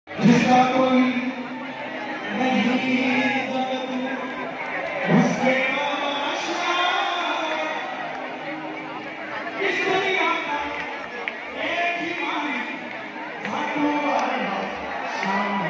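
A man sings loudly through a loudspeaker system outdoors.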